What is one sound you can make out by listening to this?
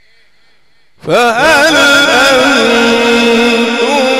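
A man chants loudly through a loudspeaker, his voice echoing.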